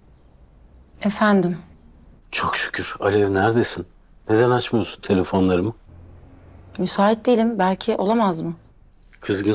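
A woman speaks calmly into a phone, close by.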